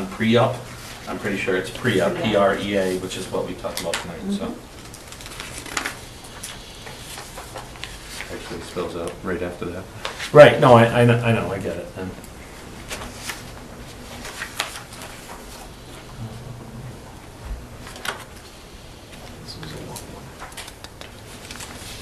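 Paper rustles on a table.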